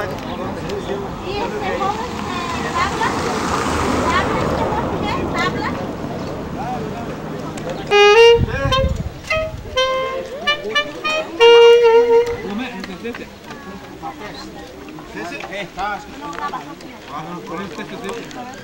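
A crowd of men and women talks and murmurs outdoors.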